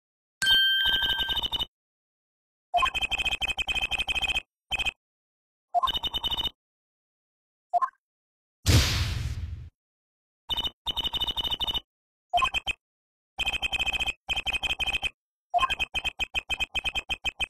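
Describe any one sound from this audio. Rapid electronic blips chatter in short bursts, like a game's dialogue ticker.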